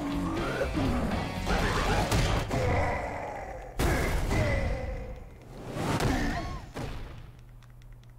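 Game sound effects whoosh and crash.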